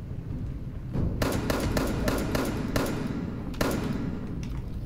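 Shotgun blasts ring out in quick succession.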